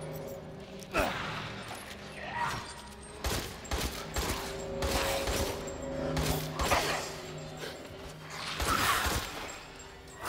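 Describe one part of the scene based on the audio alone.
A pistol fires sharp shots, one after another, echoing in a stone chamber.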